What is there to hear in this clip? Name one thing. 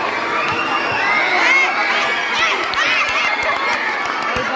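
Young girls cheer and scream with excitement.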